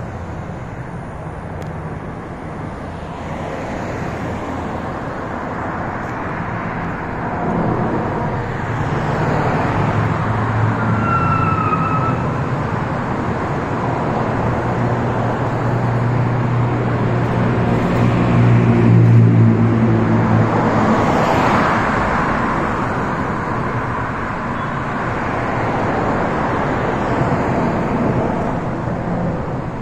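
Traffic rushes past steadily on a busy road nearby.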